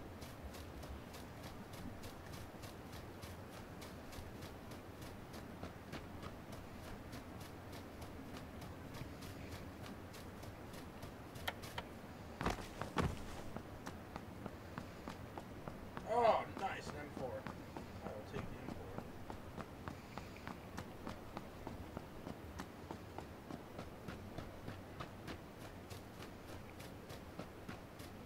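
Footsteps thud quickly and steadily across a hard floor.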